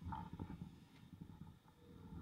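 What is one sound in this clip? A key clicks as it turns in a scooter's ignition lock.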